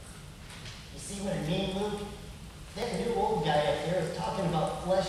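A man sings in a silly, cartoonish puppet voice close by.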